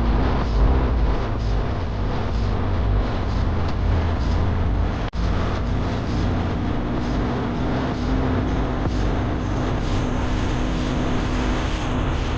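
Wind rushes loudly past a moving vehicle outdoors.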